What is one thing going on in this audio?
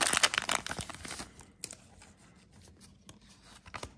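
Playing cards slide and rustle against each other.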